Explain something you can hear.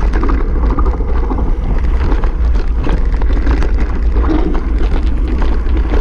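Wind rumbles loudly against a microphone outdoors.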